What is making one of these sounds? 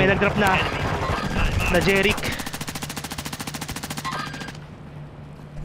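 A rifle fires in rapid automatic bursts.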